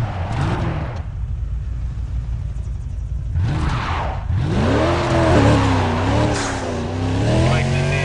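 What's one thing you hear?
Car tyres screech and skid on loose ground.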